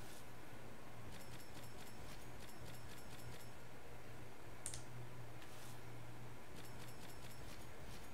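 Soft clicking ticks sound as cards flip over one after another.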